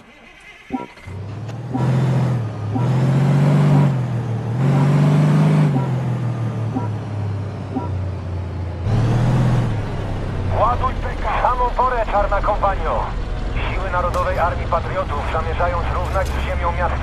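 A tank engine rumbles and roars.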